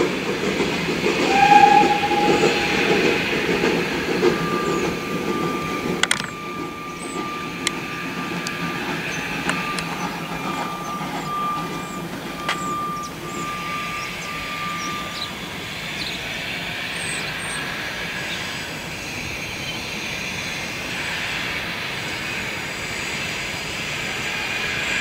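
A steam train rumbles along the tracks, moving away into the distance.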